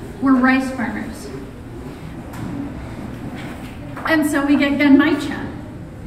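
A woman speaks with animation into a microphone in a large room.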